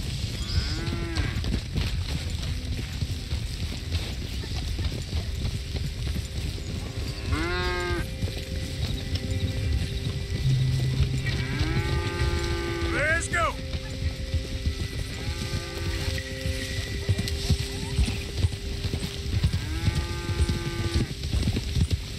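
Cattle moo loudly in long, drawn-out calls.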